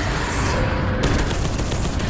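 A gun fires rapidly in loud bursts.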